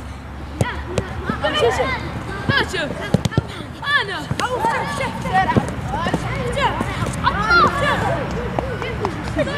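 Young boys shout and call out to each other outdoors.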